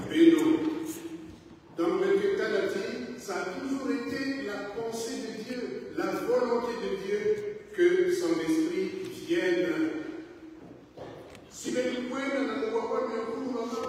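An elderly man preaches with animation through a microphone in an echoing hall.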